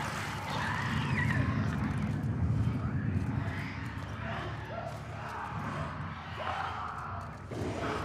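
Footsteps shuffle softly over a gritty floor.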